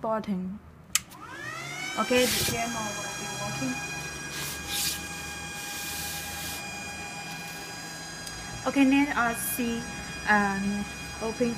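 An electronic device starts up with a high whine that rises, then holds steady.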